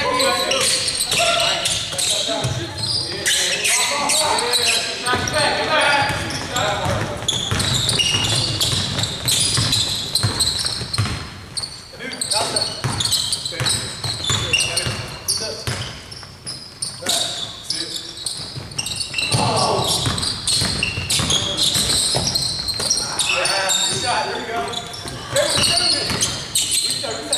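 Players shout to each other in a large echoing gym.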